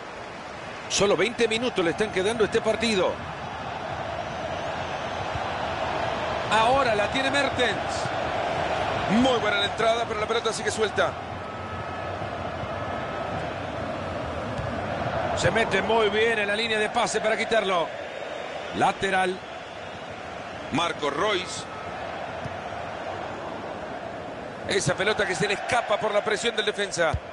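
A stadium crowd roars steadily in the background.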